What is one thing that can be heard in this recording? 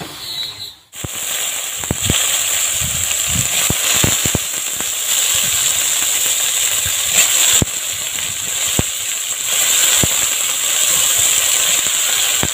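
A metal spatula scrapes and knocks against a wok.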